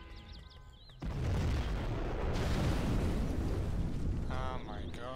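A huge explosion booms and rumbles deeply.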